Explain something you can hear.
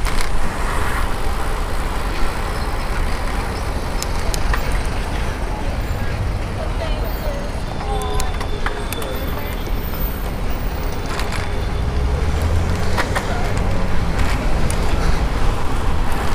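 Wind rushes loudly past, outdoors.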